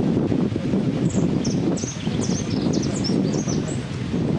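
A small bird chirps in short, high, sliding notes.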